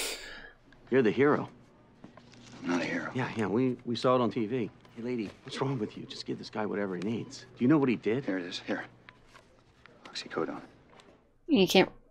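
A man speaks calmly, heard as if from a film soundtrack.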